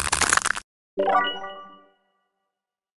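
A short bright chime rings out and fades.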